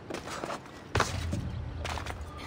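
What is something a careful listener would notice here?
A heavy thud sounds as someone drops onto a stone floor.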